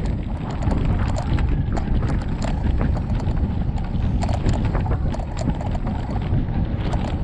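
Bicycle tyres crunch and rattle over a dirt track.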